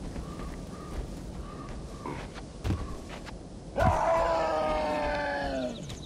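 Footsteps thud softly on the ground as a figure runs.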